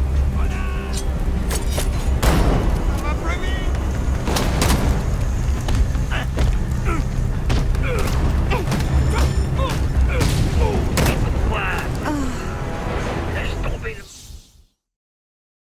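Punches and kicks thud in a noisy brawl.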